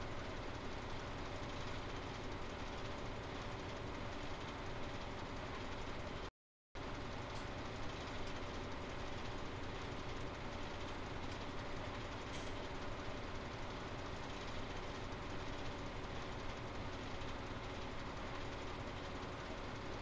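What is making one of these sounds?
A harvester engine rumbles steadily.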